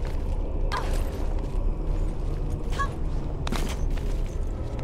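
Hands grab and scrape on a stone ledge.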